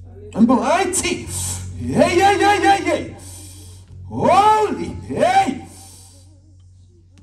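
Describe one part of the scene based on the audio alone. Women sing loudly and joyfully nearby.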